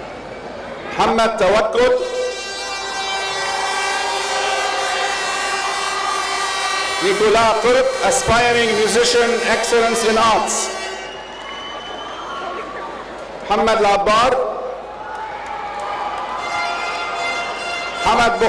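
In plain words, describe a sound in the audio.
A man reads out through a loudspeaker in a large echoing hall.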